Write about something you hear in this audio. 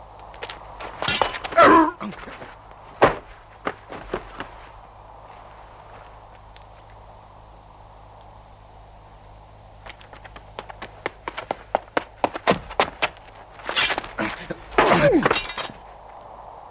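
A man cries out loudly in a pained voice.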